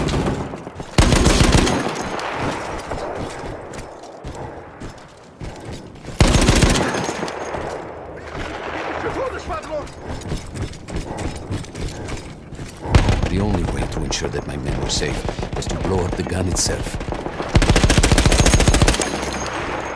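A heavy machine gun fires loud, rapid bursts.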